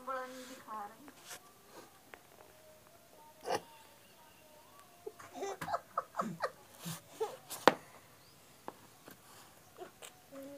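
A young child babbles and squeals close by.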